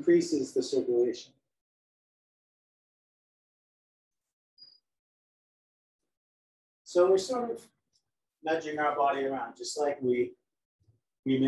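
A man speaks calmly and close by, in pauses.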